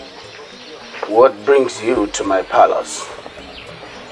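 A man speaks firmly nearby.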